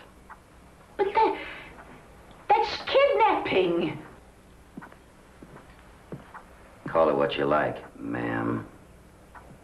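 An elderly woman speaks sharply and indignantly.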